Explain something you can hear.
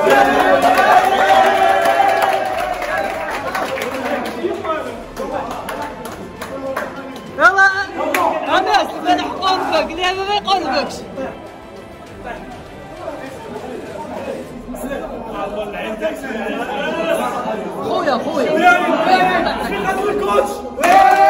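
Several men talk and shout with excitement close by, in a room with some echo.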